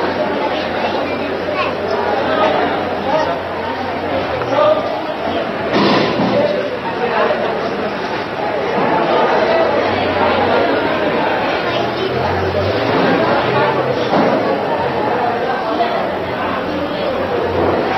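A crowd murmurs and chatters throughout.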